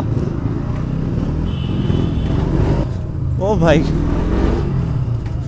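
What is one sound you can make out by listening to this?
A crowd of people chatter nearby on a busy street.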